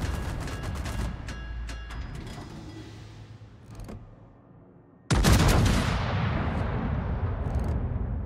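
Heavy naval guns fire with a deep, booming blast that rumbles away.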